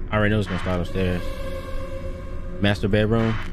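Static hisses loudly.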